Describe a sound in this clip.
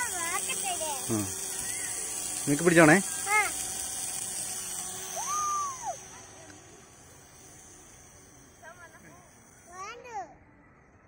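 A toy helicopter's rotor whirs with a high buzz.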